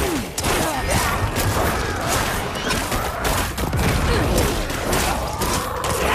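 Magic blasts burst with sharp bangs.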